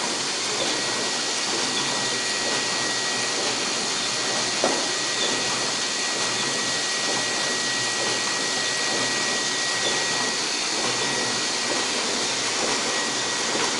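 A steady high whine comes from a running machine.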